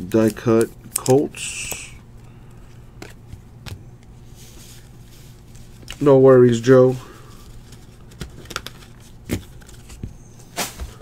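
Trading cards rustle and flick softly as hands sort through them.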